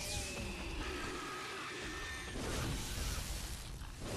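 Electricity crackles and hisses.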